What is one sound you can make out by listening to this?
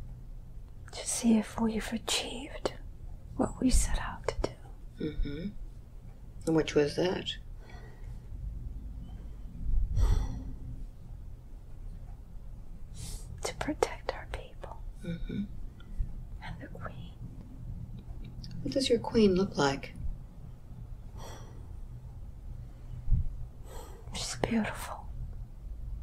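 An elderly woman speaks weakly and haltingly, close by.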